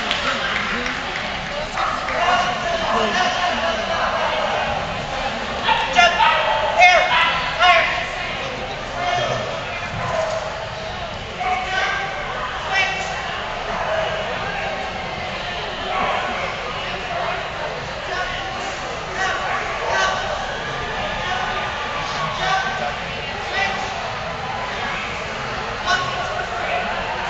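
A woman calls out commands to a dog with animation.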